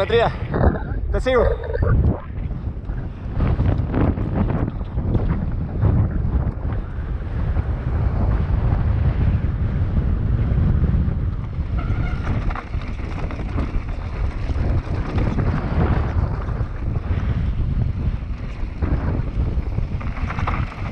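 Wind rushes loudly past a moving mountain bike.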